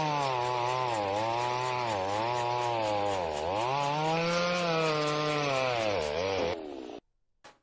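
A chainsaw engine roars while cutting through wood.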